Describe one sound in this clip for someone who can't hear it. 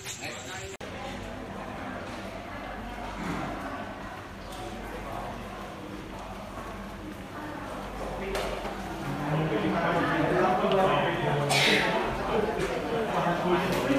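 Footsteps shuffle along a hard floor.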